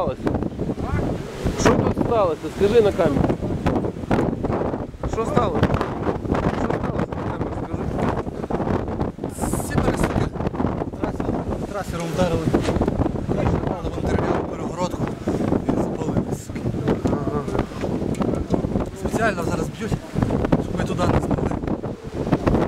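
Wind blusters loudly against a microphone.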